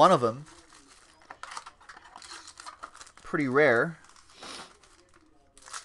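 Cardboard boxes rustle and scrape as they are handled.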